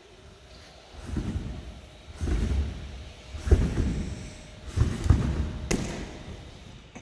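A gymnast lands with dull thumps on padded mats.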